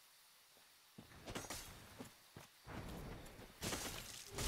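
A sword swings through the air with a whoosh.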